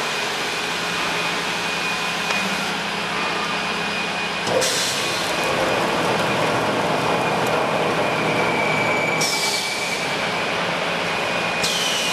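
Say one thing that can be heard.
A machine hums and whirs steadily with a thin whine.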